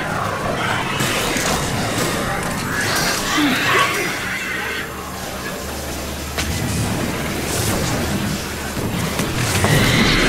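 An energy beam hums and crackles loudly.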